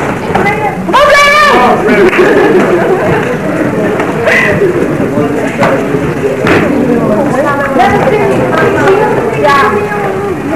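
Kicks and punches thud against bodies.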